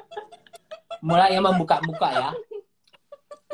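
A woman laughs loudly through a video call.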